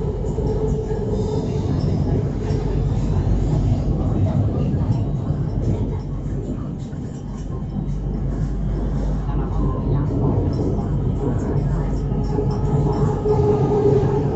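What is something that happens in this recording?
A train rumbles steadily along an elevated track.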